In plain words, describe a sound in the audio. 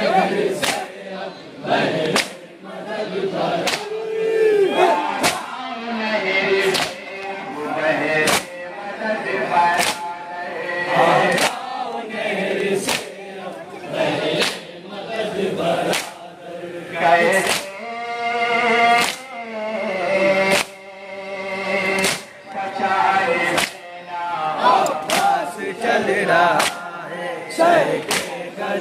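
A crowd of men chants along in unison.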